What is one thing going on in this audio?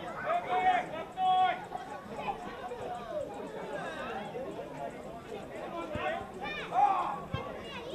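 Men shout to each other outdoors across a playing field.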